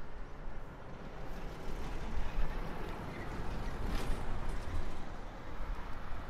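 A large truck rumbles past.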